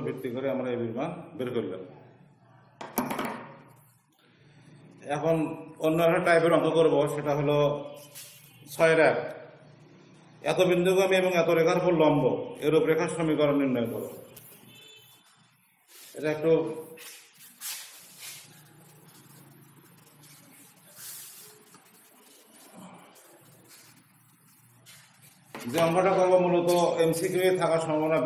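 An elderly man speaks calmly and steadily, close to a microphone.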